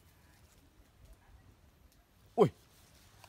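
Leaves rustle as a hand pushes through branches.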